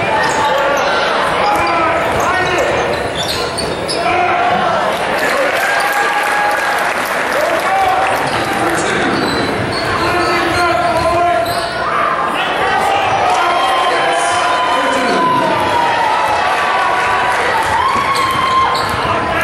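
A basketball bounces on the court.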